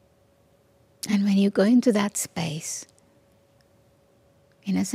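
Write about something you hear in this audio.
An elderly woman speaks calmly into a microphone, with pauses.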